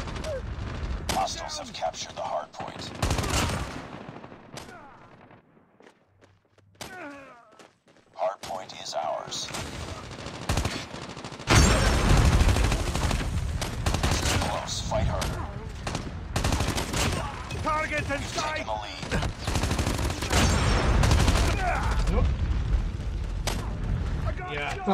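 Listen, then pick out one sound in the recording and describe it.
Rapid gunfire rattles from a video game.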